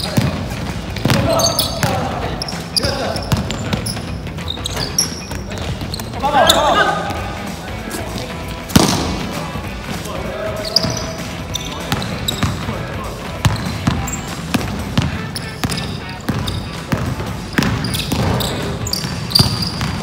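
A basketball bounces on a wooden court, echoing in a large hall.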